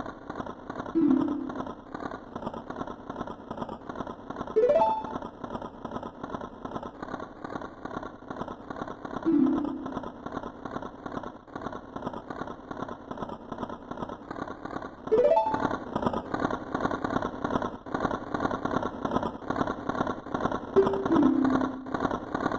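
A short falling chime sounds.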